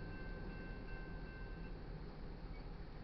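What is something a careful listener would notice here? A railroad crossing bell rings steadily.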